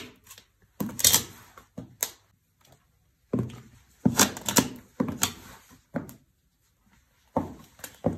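A high heel crunches and crushes dry noodles on a hard floor.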